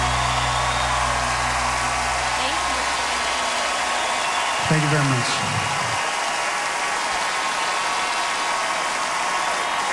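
A large crowd claps and cheers steadily in a big echoing hall.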